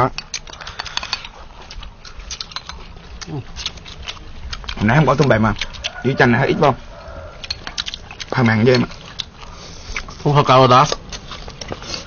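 A man slurps food noisily.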